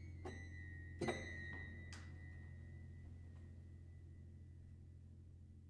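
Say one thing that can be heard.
Piano strings are struck by hand inside the piano and ring out, slowly fading.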